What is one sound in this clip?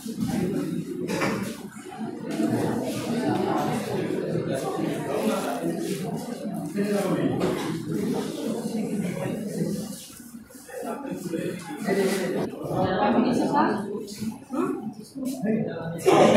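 Many people chatter quietly in the background.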